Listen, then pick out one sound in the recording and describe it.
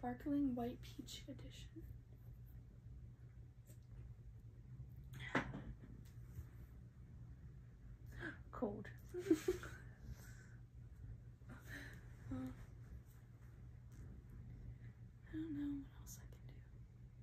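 A young woman talks softly close by, in short bursts.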